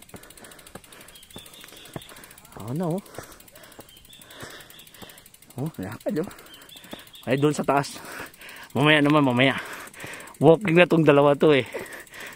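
Cycling shoes tap and scuff on concrete as a cyclist walks a bike uphill.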